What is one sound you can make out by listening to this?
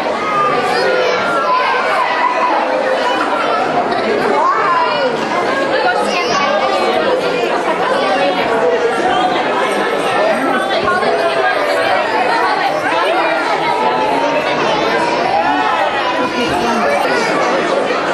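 Young children sing together loosely.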